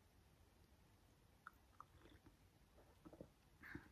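A woman sips a hot drink from a mug.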